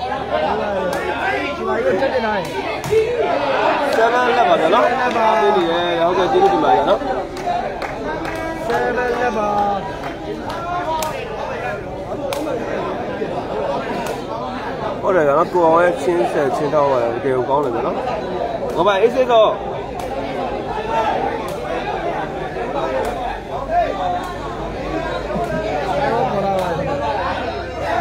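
A large crowd of men and boys chatters and shouts nearby.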